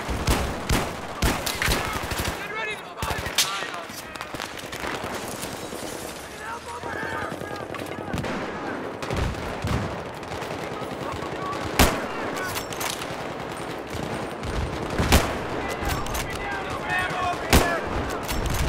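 Gunshots crack sharply, one after another.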